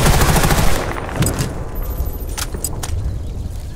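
A rifle magazine clicks into place during a reload.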